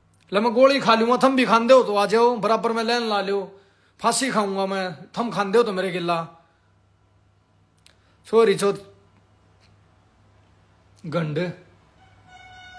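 A young man talks with animation close to a phone microphone, in short bursts.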